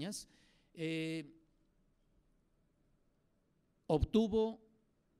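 A middle-aged man speaks slowly into a microphone, pausing between words.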